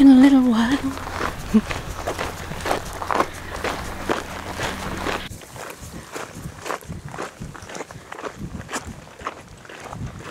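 Footsteps crunch steadily on a dirt and gravel path.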